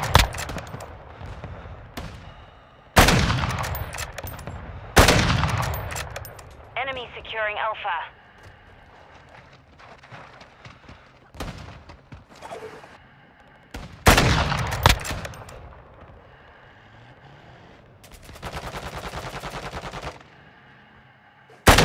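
A sniper rifle fires loud shots that echo away.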